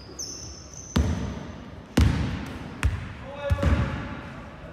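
A basketball bounces on a hardwood floor, echoing in a large hall.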